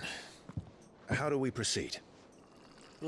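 A man speaks calmly, asking a question.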